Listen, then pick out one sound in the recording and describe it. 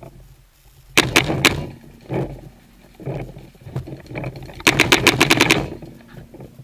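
A paintball gun fires quick bursts of shots close by.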